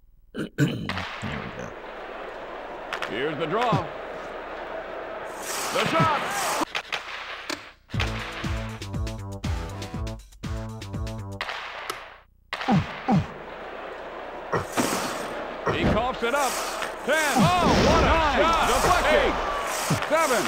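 Video game hockey sounds play.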